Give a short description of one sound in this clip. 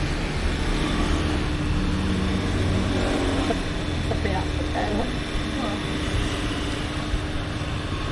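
Two elderly women talk warmly with each other.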